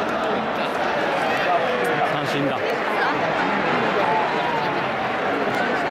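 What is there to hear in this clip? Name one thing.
A large stadium crowd chants and cheers steadily, echoing around the stands.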